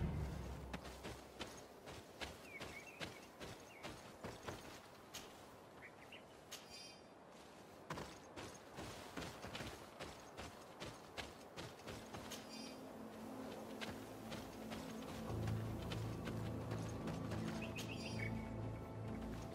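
Footsteps crunch quickly over dirt and gravel.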